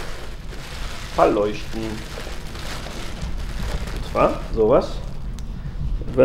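Plastic wrapping crinkles in a man's hands.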